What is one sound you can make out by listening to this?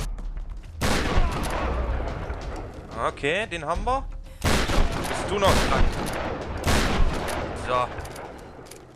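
A shotgun fires loud blasts in quick succession.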